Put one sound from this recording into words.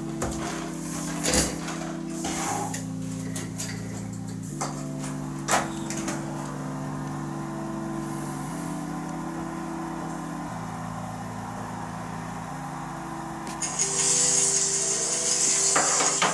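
Soft, sustained keyboard chords play slowly, changing every couple of seconds.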